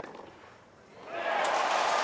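A large crowd bursts into loud cheering and applause.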